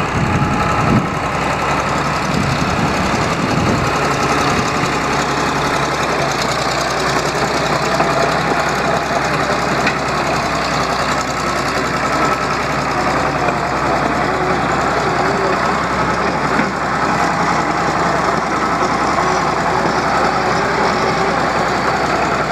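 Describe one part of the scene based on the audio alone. Steel tracks clank as a crawler tractor moves.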